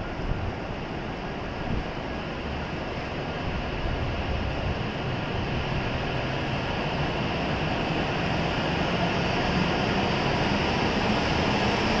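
A high-speed train pulls out of the station, its rumble and whoosh slowly growing louder.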